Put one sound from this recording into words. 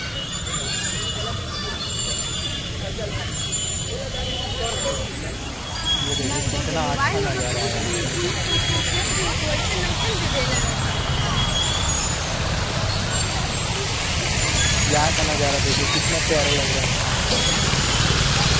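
A fountain splashes and patters steadily nearby.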